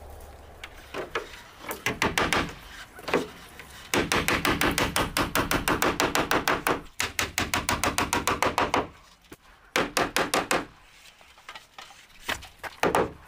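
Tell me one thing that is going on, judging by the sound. A hammer taps rapidly on wooden boards.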